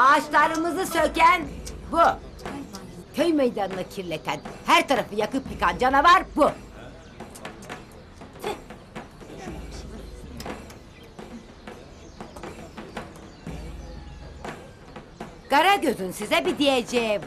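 An elderly woman speaks with emotion, close by.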